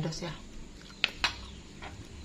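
A spoon clinks against a plate.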